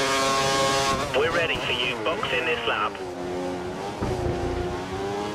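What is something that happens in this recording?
A Formula One car's V8 engine drops in pitch as it downshifts under braking.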